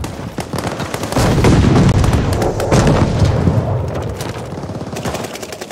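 Rapid gunshots crack from a game.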